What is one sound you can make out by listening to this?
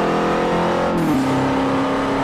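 A car engine drops in pitch as it shifts gear.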